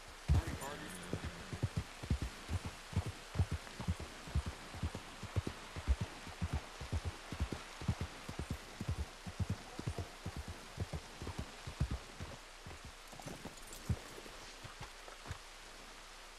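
Horse hooves thud steadily on a dirt road.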